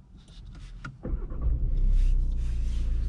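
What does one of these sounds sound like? A car engine cranks and starts up.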